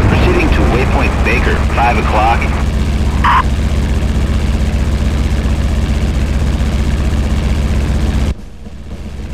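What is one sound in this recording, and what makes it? Wind rushes past a plane.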